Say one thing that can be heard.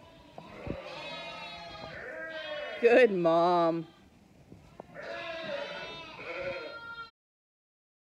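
Young lambs bleat in high, thin voices.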